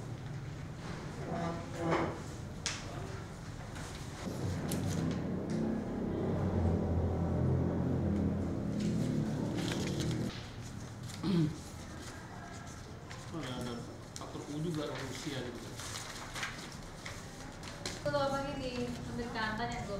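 Sheets of paper rustle and flip as pages are turned.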